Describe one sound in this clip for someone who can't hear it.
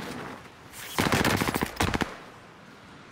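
A loud impact bursts close by.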